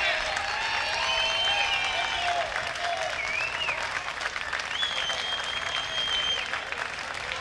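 A large outdoor crowd claps and cheers.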